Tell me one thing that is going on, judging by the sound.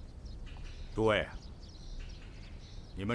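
A man speaks, asking a question.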